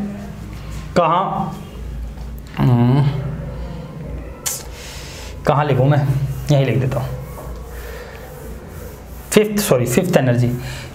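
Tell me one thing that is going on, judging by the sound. A man explains with emphasis in a reverberant room.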